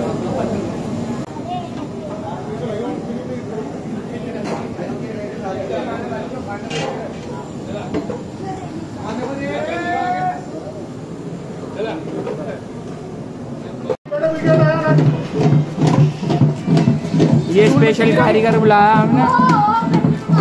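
A wooden paddle scrapes and stirs inside a metal pot.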